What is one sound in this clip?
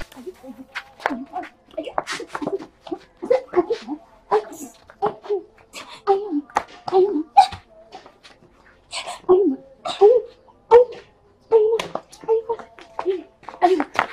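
Two women scuffle and grunt outdoors.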